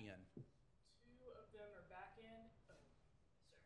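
A woman speaks quietly through a microphone at a distance.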